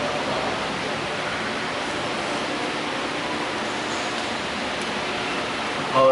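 People murmur quietly in a large echoing hall.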